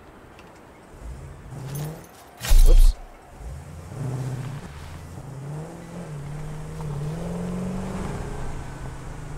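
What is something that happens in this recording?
A vehicle engine hums and revs up and down.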